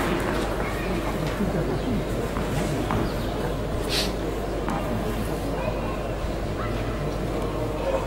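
A tennis ball bounces on a clay court before a serve.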